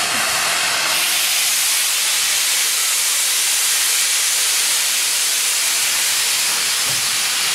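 A steam locomotive's steam hisses loudly as it vents.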